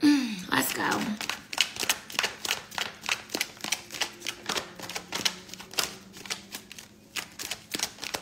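Trading cards flick and click rapidly.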